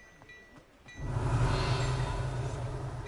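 A loud magical burst rumbles and crackles.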